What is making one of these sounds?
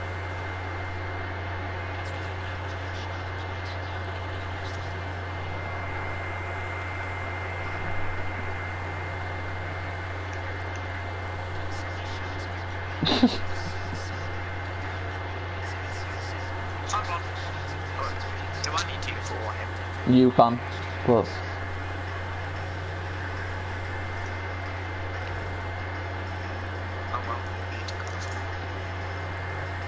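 A sports car engine hums while cruising.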